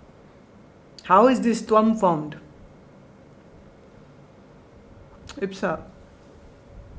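A woman speaks calmly in short bursts, close by.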